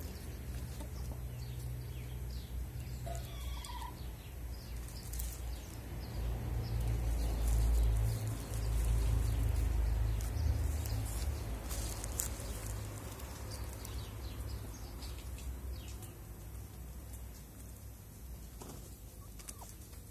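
Hens peck and scratch in dry leaves close by.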